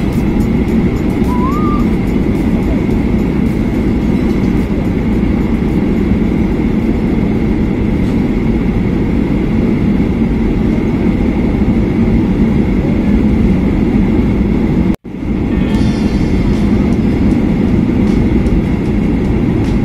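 Jet engines roar steadily from inside an airplane cabin.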